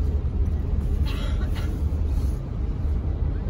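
Another train rushes past close by.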